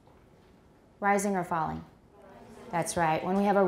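A middle-aged woman reads aloud clearly into a close microphone.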